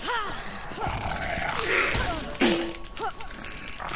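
A creature snarls up close.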